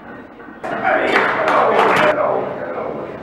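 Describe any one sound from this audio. A heavy barbell clanks as it is set back on a rack.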